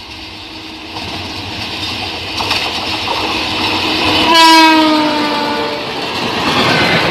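An electric locomotive approaches and rumbles past loudly.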